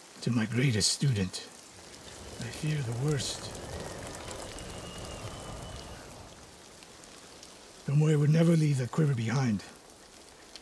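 An older man speaks in a low, grave voice, close by.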